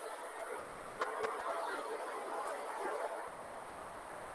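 A young woman speaks quietly through an online call.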